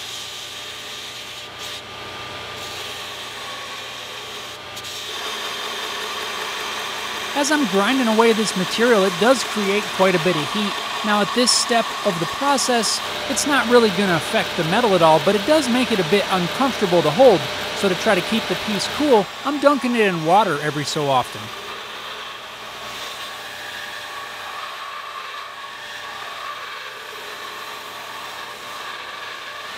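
A belt sander grinds steel with a steady whir.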